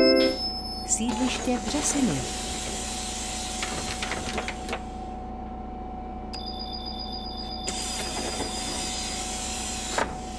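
Bus doors hiss open and shut.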